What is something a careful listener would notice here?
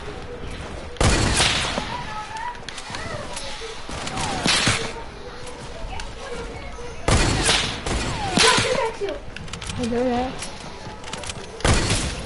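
Loud game building sounds thud and crack in short bursts.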